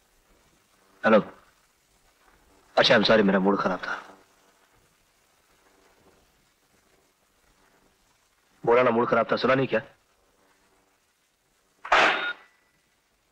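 A young man speaks briefly into a telephone.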